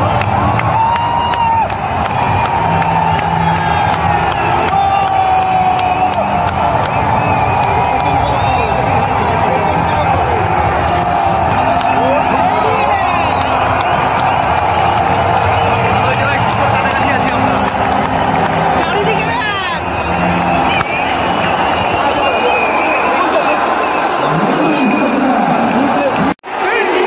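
A large crowd chants and sings together in an echoing stadium.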